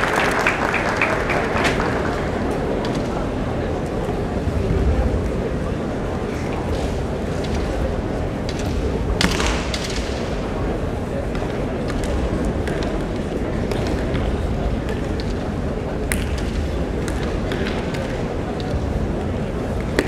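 Bamboo swords clack and knock together in a large echoing hall.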